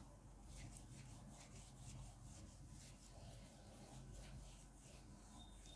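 An eraser rubs and wipes across a whiteboard.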